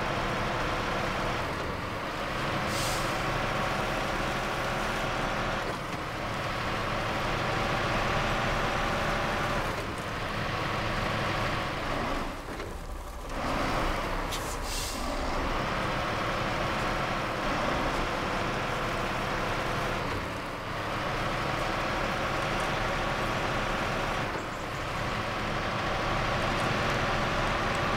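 Truck tyres churn through mud and over rocks.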